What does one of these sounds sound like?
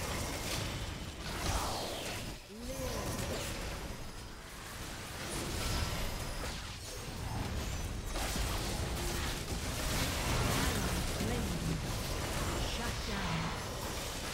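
Game weapons clash and strike repeatedly.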